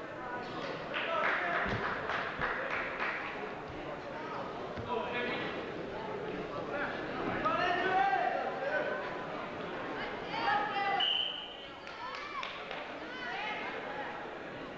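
Spectators shout and cheer in an echoing gym.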